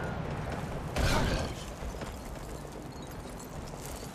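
A giant snowball rolls past and crashes with a deep rumble.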